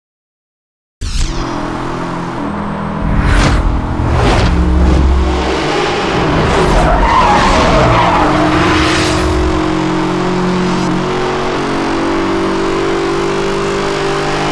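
A car engine roars as it speeds along.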